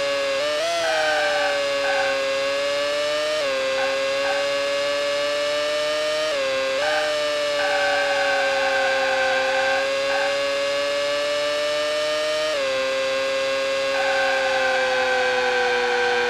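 Tyres squeal through the corners.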